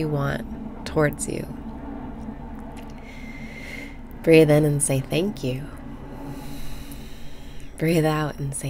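A young woman speaks cheerfully and close to a microphone.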